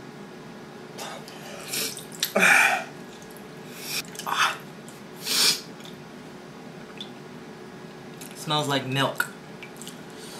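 A young man laughs and gasps close by.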